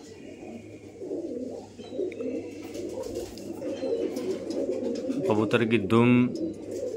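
Pigeons coo softly with low, throaty rumbles.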